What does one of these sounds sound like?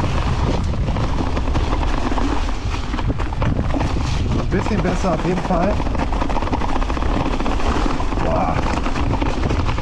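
Wind rumbles past, outdoors.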